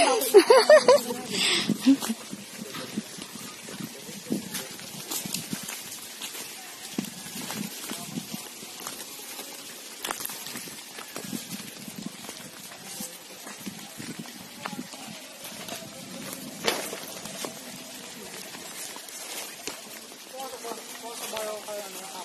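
Footsteps crunch on a dirt and stone trail.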